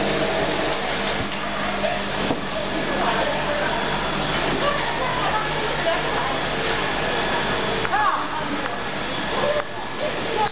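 Glass bottles clink and rattle along a conveyor.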